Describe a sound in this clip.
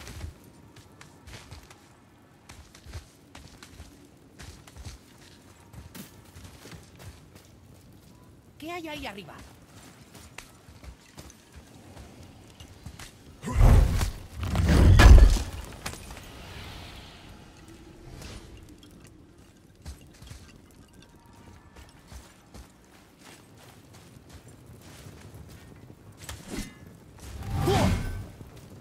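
Footsteps thud on a wooden ladder and stone.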